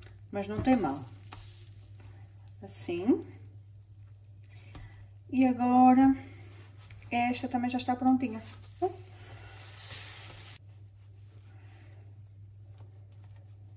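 A spatula scrapes and taps against a frying pan.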